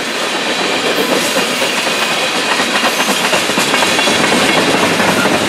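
Steel wheels of a freight train click rhythmically over rail joints.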